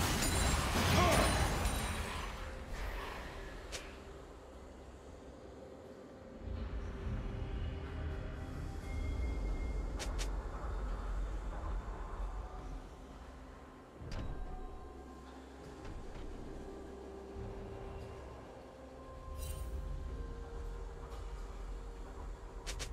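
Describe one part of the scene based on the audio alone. Video game magic effects whoosh and crackle.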